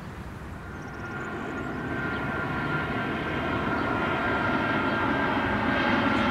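A jet airliner whines overhead as it approaches, growing louder.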